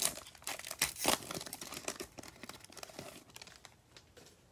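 A plastic wrapper crinkles and tears as it is pulled open.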